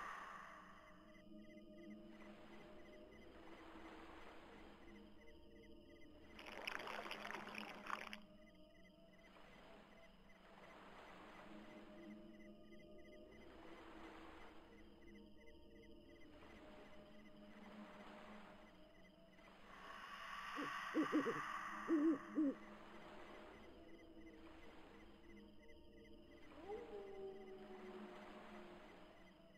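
Eerie game music plays steadily.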